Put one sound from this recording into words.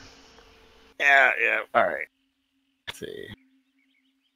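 Another man talks and laughs over an online call.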